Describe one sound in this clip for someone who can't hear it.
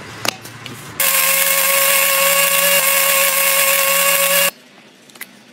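An electric blade grinder whirs, grinding grain to powder.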